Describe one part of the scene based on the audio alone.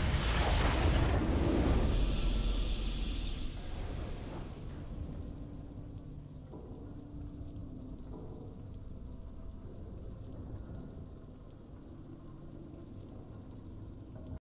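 A triumphant orchestral fanfare swells and then settles into soft, steady music.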